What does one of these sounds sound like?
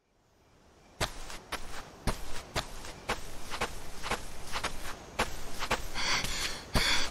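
Footsteps crunch quickly on a gravel path.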